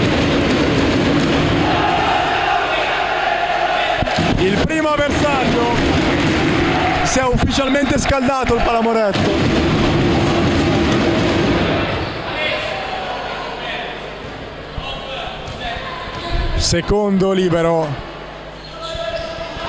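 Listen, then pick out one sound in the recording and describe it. A crowd cheers and chants loudly in an echoing gym.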